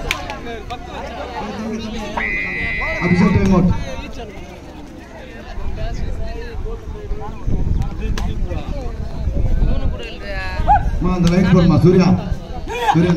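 A crowd of spectators chatters and shouts loudly outdoors.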